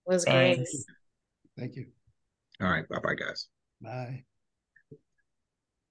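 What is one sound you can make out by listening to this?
A middle-aged woman speaks warmly and cheerfully over an online call.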